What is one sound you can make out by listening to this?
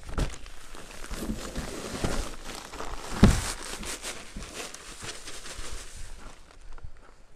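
Dry powder pours and hisses out of a sack into a metal tub.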